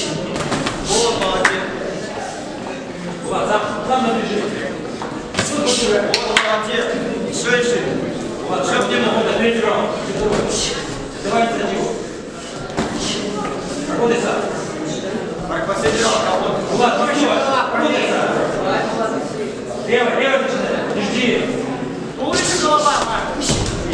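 Boxing gloves thud against each other with quick punches.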